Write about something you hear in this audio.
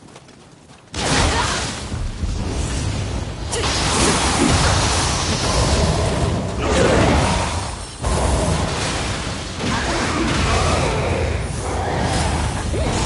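Weapons clash and magic crackles in a loud fight.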